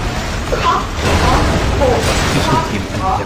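An explosion bursts with a crackling blast.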